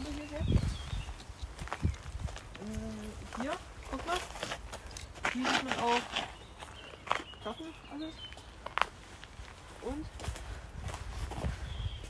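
Footsteps crunch on twigs and dry leaves.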